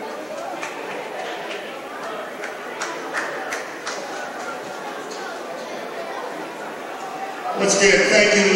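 A crowd claps in a large echoing hall.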